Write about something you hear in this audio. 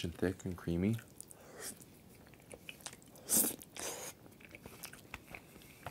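A young man chews food wetly close by.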